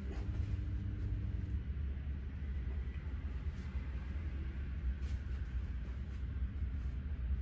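A cloth shirt rustles as it is pulled on over the head.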